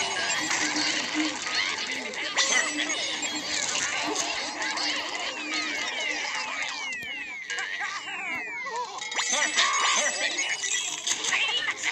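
A horde of cartoon zombies groans and grunts.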